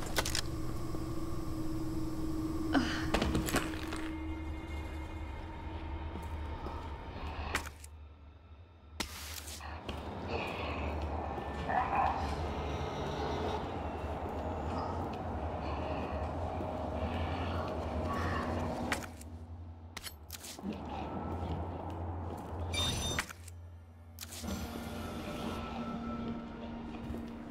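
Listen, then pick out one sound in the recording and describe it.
Footsteps walk slowly across a hard floor.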